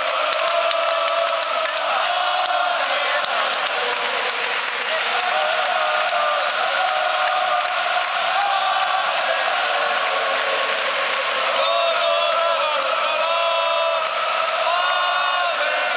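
A large stadium crowd sings and chants loudly in unison.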